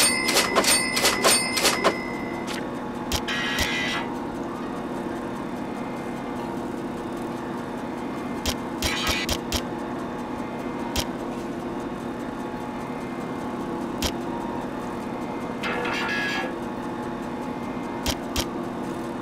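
Menu clicks tick sharply now and then.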